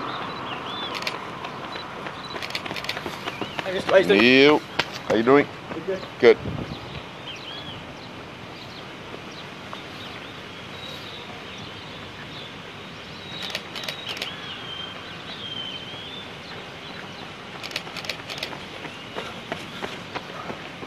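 Running footsteps slap on pavement close by.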